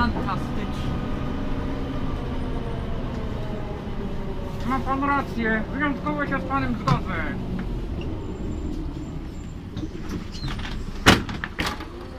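Loose fittings rattle inside a moving bus.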